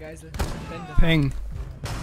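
A rifle fires a single sharp shot.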